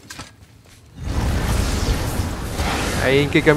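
Heavy stone doors grind and rumble open.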